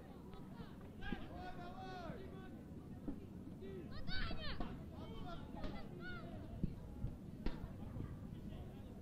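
Children shout excitedly on an open field.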